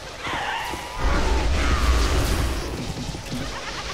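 A loud explosion booms with a deep rumble.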